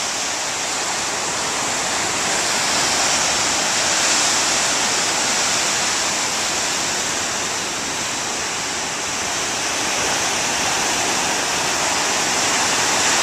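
Waves crash and surge over rocks, with a steady roar of foaming surf.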